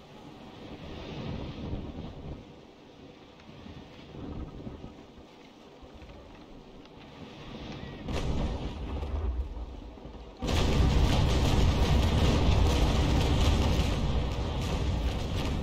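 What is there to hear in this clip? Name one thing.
Waves wash and surge around a ship.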